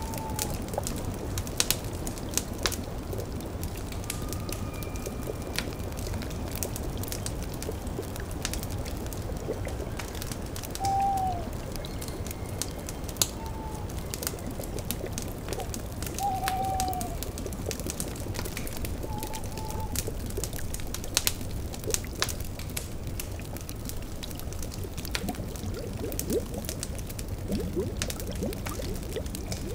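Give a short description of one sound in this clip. A cauldron bubbles softly.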